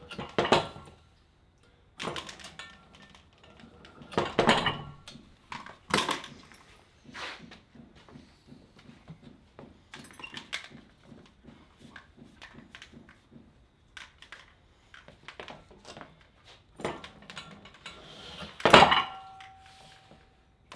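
A metal carabiner and chain clink and rattle as a handle is pulled repeatedly.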